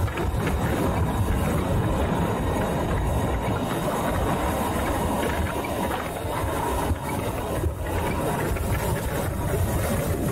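Wind buffets loudly against a microphone.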